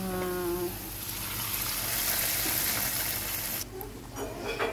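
Hot oil sizzles loudly as it hits liquid.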